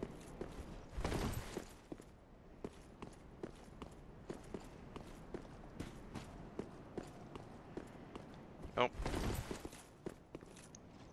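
A heavy body rolls across stone with a rushing thud.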